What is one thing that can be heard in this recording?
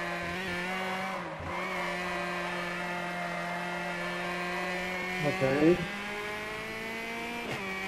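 A car engine drones steadily at high revs, dipping briefly as it shifts gear.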